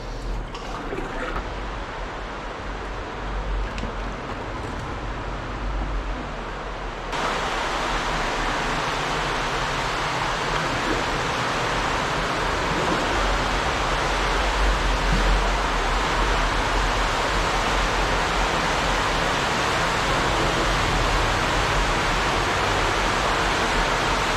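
Water rushes steadily nearby.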